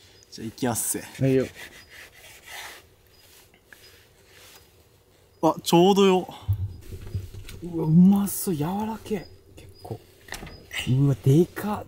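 A knife saws through a steak on a wooden board.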